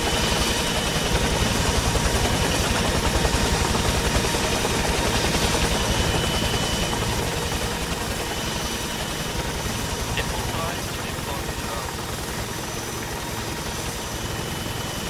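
A helicopter's rotor thumps steadily, loud and close.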